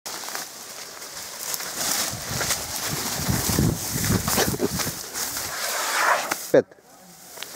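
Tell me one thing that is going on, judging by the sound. Leaves and branches rustle and snap as an elephant pushes through thick brush.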